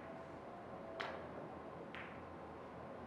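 Billiard balls click against each other as they roll.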